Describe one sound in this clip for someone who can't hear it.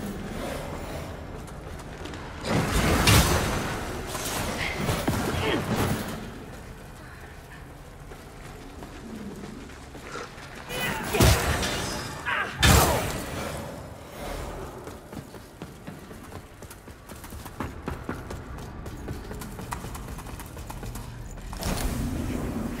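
Footsteps tread on stone and wood.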